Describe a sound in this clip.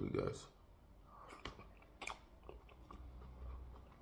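A young man chews food loudly up close.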